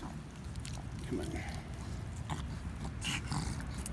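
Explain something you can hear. A hand pats and rubs a dog's fur.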